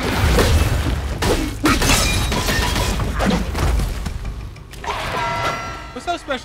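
Blows and clashes of combat ring out in quick bursts.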